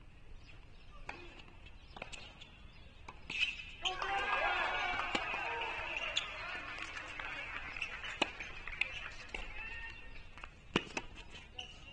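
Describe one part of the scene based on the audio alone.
A tennis ball is struck with sharp pops of a racket, back and forth.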